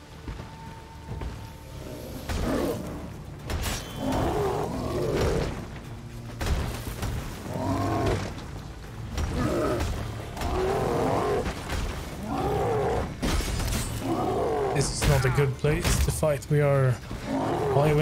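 Swords clash and slash.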